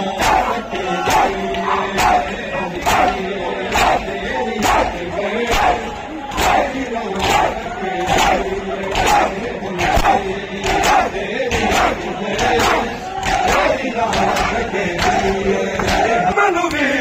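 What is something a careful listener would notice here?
A crowd of men beats their chests in a steady, rhythmic pounding.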